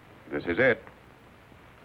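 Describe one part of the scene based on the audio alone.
A man speaks briefly.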